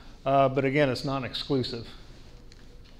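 A middle-aged man speaks into a microphone over a loudspeaker, in a room with some echo.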